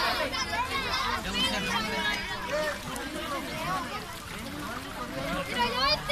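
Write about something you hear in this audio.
A crowd of children and young people shout and chatter excitedly outdoors.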